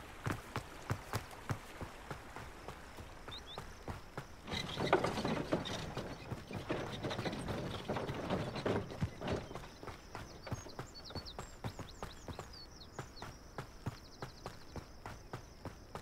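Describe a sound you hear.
Footsteps run quickly over dirt and stone.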